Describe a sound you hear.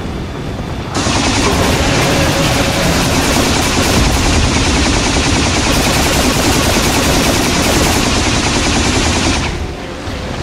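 A huge creature roars loudly.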